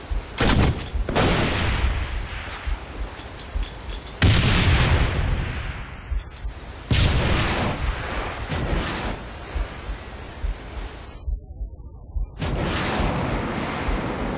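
A gun fires in loud booming blasts that echo away.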